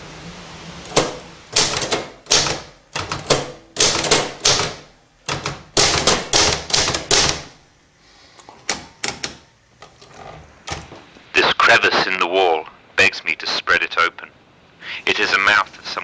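A typewriter clacks as keys are struck.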